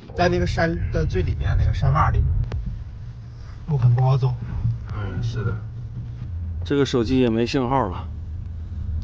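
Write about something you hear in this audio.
A man talks close by, inside a car.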